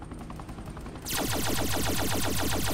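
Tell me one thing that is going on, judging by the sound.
A machine gun fires in a rapid burst.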